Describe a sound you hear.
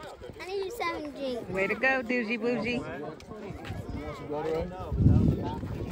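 A young boy speaks close by, with animation.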